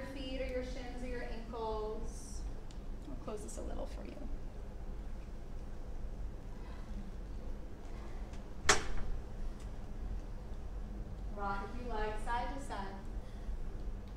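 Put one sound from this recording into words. A woman speaks calmly nearby, giving instructions.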